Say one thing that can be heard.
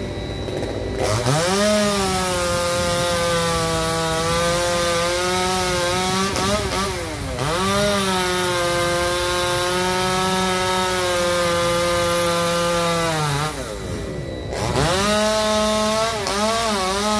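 A chainsaw engine whines loudly, revving up and down as it cuts through a branch.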